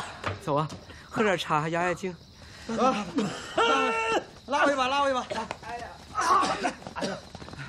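An elderly man shouts urgently nearby.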